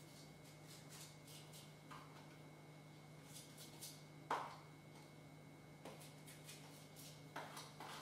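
Small sprinkles patter lightly onto a cake.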